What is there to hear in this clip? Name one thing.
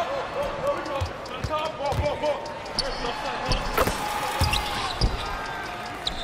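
A basketball bounces on a hardwood court.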